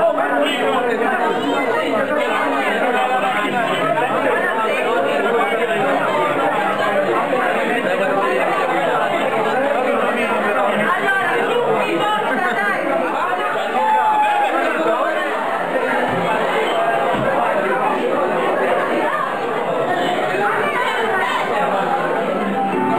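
A crowd of men and women chatter loudly all around.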